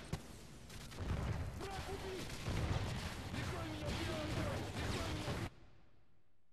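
A deep explosive roar rumbles loudly.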